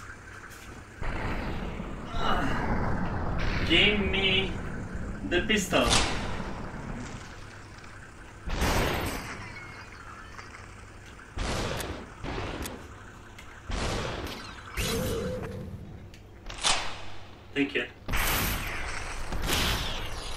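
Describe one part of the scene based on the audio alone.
Gunshots bang one after another in sharp bursts.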